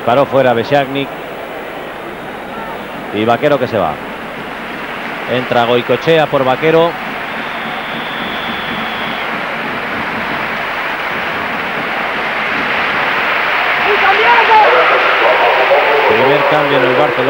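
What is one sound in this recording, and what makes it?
A large stadium crowd murmurs steadily and swells to a loud roar.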